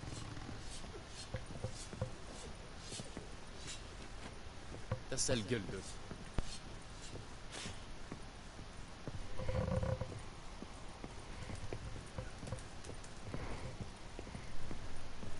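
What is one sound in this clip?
Footsteps thud on wooden floorboards and stairs.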